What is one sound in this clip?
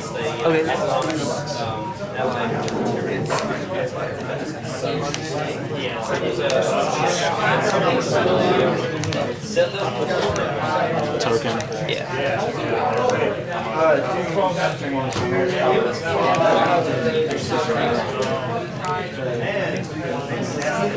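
Playing cards slide and tap softly on a table mat.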